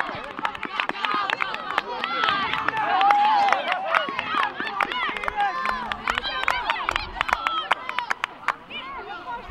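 Young boys shout and cheer excitedly outdoors.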